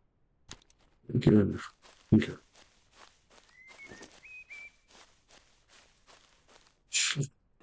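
Footsteps rustle through grass as a figure runs.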